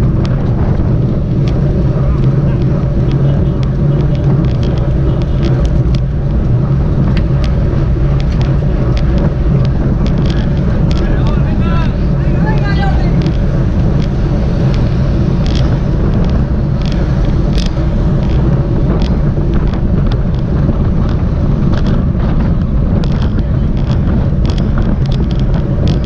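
Wind roars loudly over the microphone.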